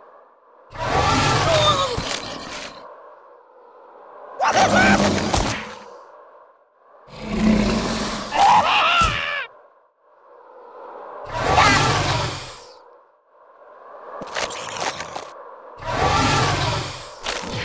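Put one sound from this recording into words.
A dragon roars in loud repeated bursts.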